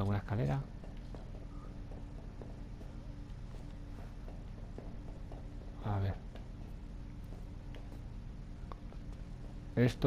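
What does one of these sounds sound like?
Footsteps pad softly on a hard floor.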